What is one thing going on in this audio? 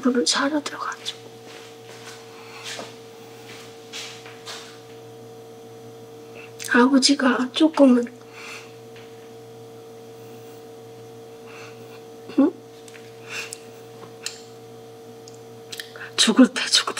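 An elderly woman speaks quietly and haltingly, close by, with emotion in her voice.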